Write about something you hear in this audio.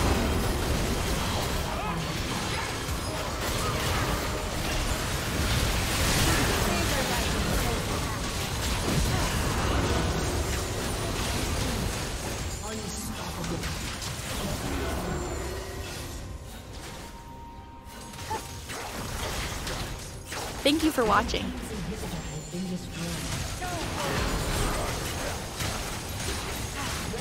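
Spells and attacks clash and crackle in a busy battle.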